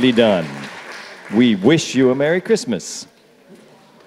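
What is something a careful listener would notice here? A choir sings in a large room and stops.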